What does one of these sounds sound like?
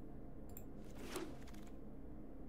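A game's card pick makes a short whooshing sound.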